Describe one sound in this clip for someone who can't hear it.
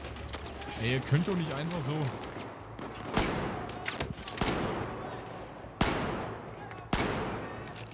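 Pistol shots crack sharply, one at a time.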